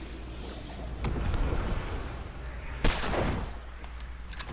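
Wind rushes past a gliding figure.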